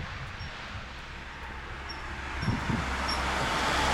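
A truck approaches along a road.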